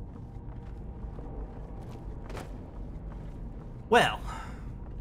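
Slow footsteps thud on wooden boards.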